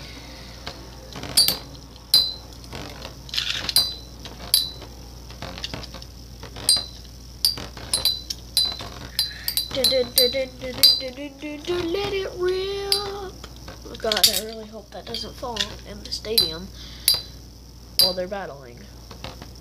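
Spinning tops clash with sharp metallic clicks.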